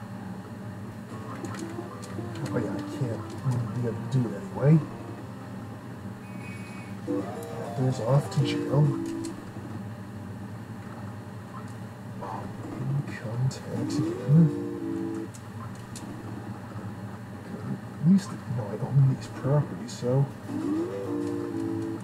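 Chiptune game music plays steadily.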